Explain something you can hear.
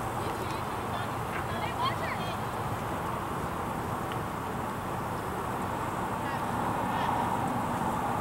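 Young women shout to each other far off across an open field.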